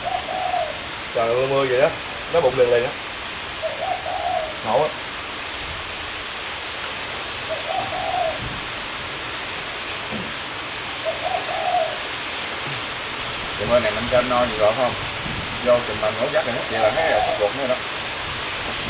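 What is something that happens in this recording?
A man talks in a relaxed way nearby.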